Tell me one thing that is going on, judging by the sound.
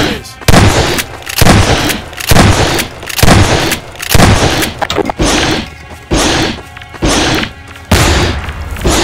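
Gunshots fire again and again, each sharp and loud.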